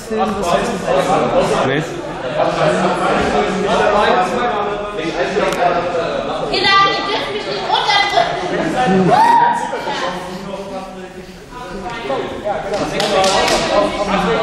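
A group of young men talk and shout with animation in a large echoing hall.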